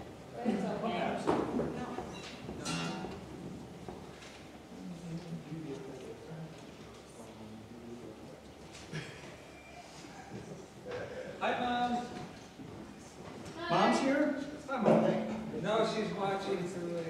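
A man speaks through a microphone in a hall.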